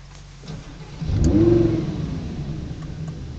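A car engine revs up sharply and then settles back down.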